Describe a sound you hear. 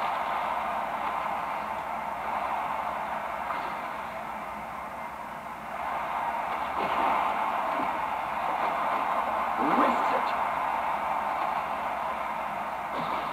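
A hockey arena crowd roars steadily through a small television speaker.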